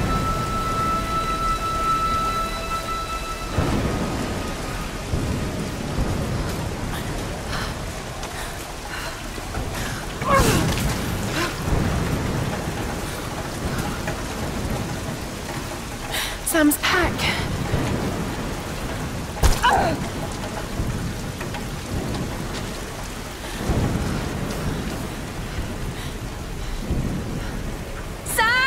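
Rain patters steadily all around.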